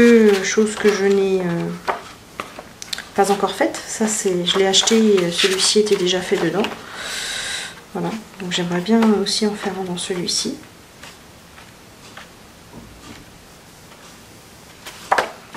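Paper pages rustle and flap as they are flipped quickly.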